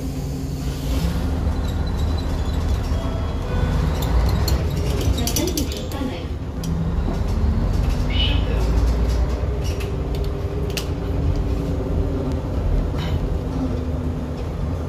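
A diesel city bus pulls away and accelerates, heard from inside.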